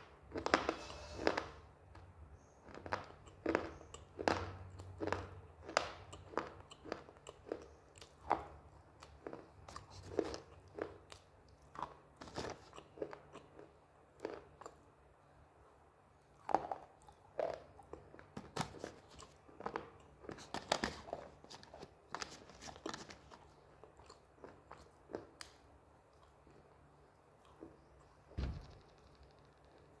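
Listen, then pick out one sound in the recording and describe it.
A young woman chews food with wet, crunchy sounds close to a microphone.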